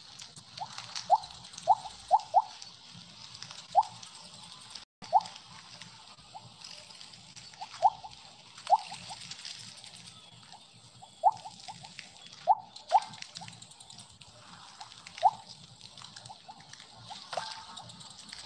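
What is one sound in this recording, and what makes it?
Short, bright electronic blips sound again and again as a snake eats in a game.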